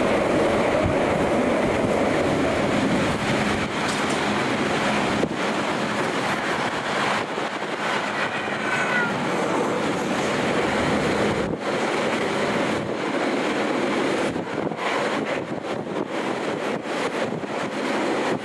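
Wind blows hard past the train's window.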